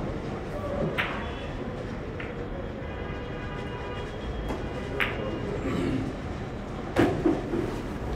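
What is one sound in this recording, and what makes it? Billiard balls clack together and knock against the cushions.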